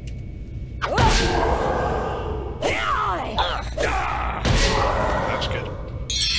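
Weapons strike a monster in quick blows.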